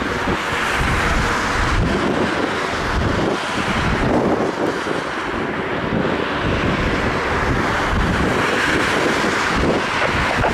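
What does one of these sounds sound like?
A helicopter's rotor thumps and roars steadily overhead at a distance.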